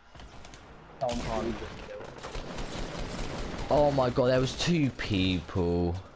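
Gunshots fire in quick bursts.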